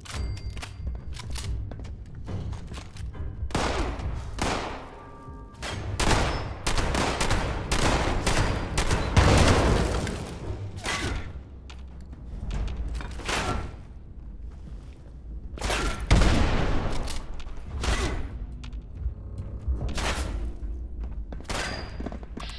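Gunshots fire in quick bursts.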